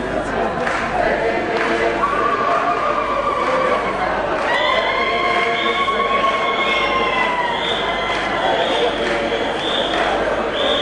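A crowd of men and women sings together with long held notes.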